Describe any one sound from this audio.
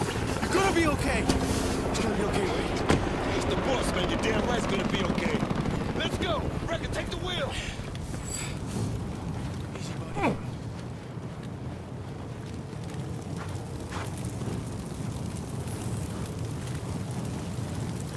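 Flames roar and crackle all around.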